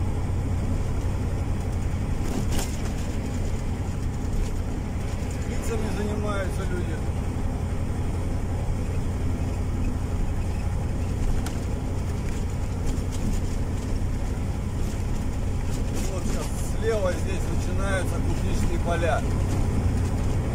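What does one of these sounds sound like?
A car engine hums steadily with tyre and road noise from inside a moving car.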